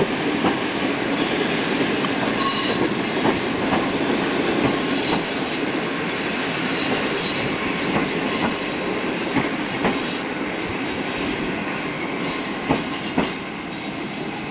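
A train rumbles past at close range.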